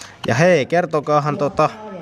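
Scissors snip through stiff plastic.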